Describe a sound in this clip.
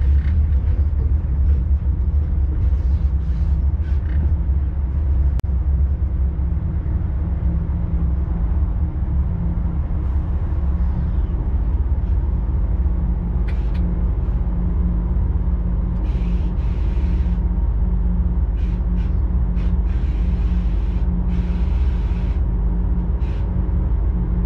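Train wheels click and squeal on the rails.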